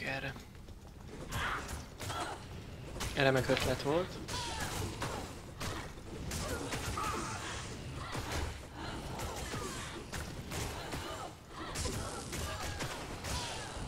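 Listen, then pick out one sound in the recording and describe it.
Weapons clash and strike rapidly in a fight.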